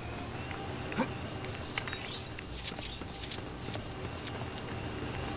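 Small plastic pieces clatter and tinkle as objects break apart.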